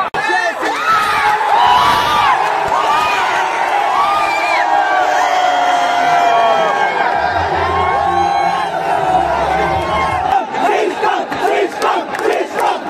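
A large crowd of young men chants and cheers loudly in an echoing stadium.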